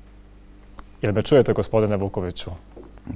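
A man speaks calmly through a studio microphone.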